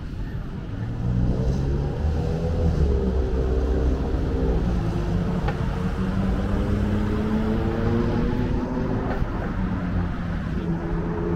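Car engines rumble and rise in pitch as traffic passes nearby.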